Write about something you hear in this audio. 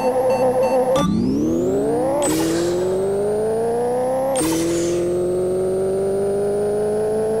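A car engine roars as it accelerates hard, rising in pitch through the gears.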